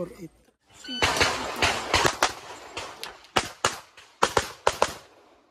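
Pistol shots crack rapidly outdoors, one after another.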